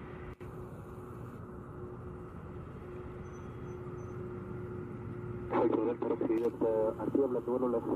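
A jet airliner's engines rumble steadily as it taxis past.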